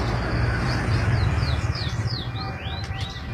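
A motorcycle engine rumbles past close by.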